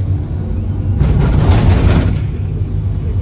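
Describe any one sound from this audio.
A bus rushes past with a loud whoosh.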